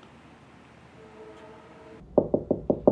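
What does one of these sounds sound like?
A teenage boy talks quietly on a phone.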